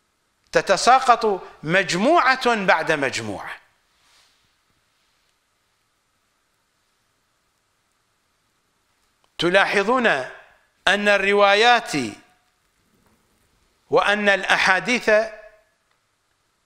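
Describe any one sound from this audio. A middle-aged man speaks with emphasis into a microphone, in short phrases with long pauses.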